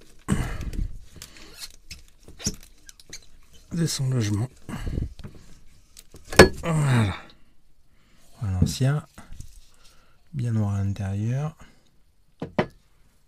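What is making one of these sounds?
A hard plastic part knocks and clatters against fittings.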